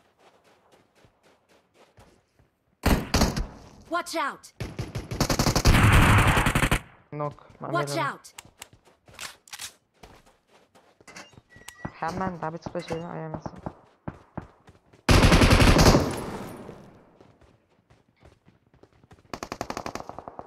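Footsteps run quickly over dirt and stone.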